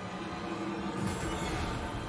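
Electricity crackles and buzzes from a reactor.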